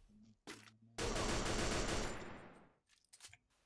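A machine gun fires a rapid burst.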